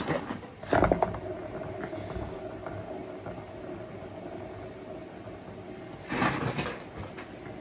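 A spinning turntable whirs steadily.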